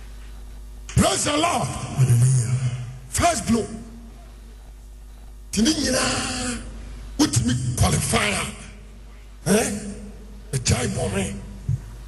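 A man preaches forcefully into a microphone, his voice echoing through a large hall.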